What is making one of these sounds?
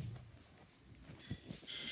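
A hand softly pats cards laid on carpet.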